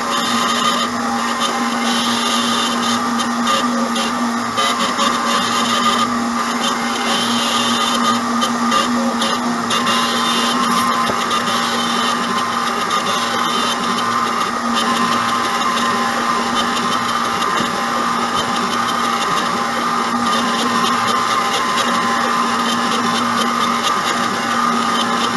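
A router spindle whines steadily while carving wood.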